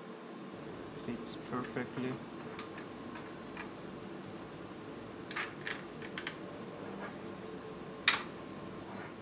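Plastic parts click and knock as hands handle a small electronic box.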